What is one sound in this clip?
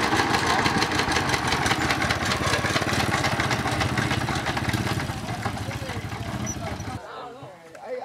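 A farm tractor engine chugs loudly nearby.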